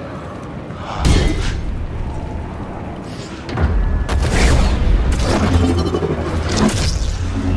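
A jet of fire blasts out with a rushing roar.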